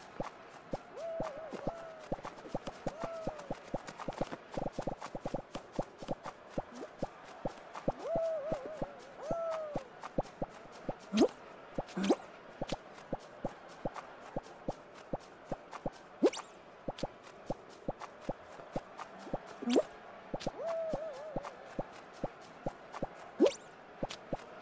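Short cartoon chirps and boings sound as a character jumps.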